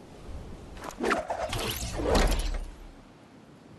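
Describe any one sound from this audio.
A glider snaps open with a loud flapping whoosh.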